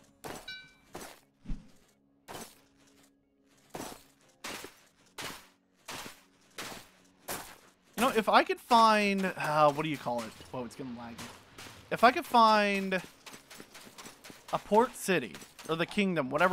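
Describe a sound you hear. Footsteps crunch steadily on snow and sand.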